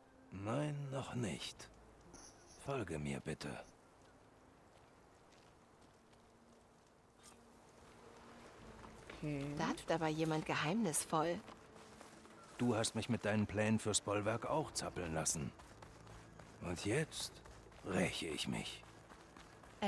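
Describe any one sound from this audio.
A man speaks in a calm, deep voice.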